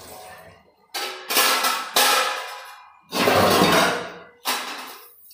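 Water gushes from a tap in loud bursts.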